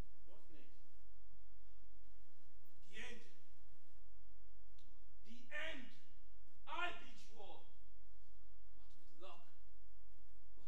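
A young man speaks loudly in short bursts in a large hall.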